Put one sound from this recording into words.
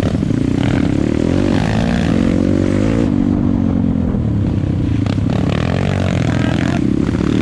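A motorcycle engine drones close by, rising and falling in pitch as it revs.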